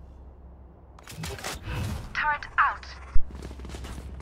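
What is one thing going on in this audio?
A gun is drawn with a metallic clatter.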